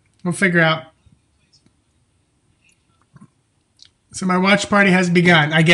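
A middle-aged man speaks calmly and close to a microphone, pausing between phrases.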